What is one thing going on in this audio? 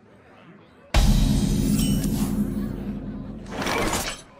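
A deep game sound effect booms and rumbles.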